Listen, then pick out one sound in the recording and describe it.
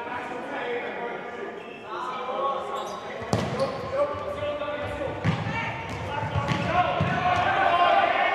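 A ball thuds against feet in an echoing indoor hall.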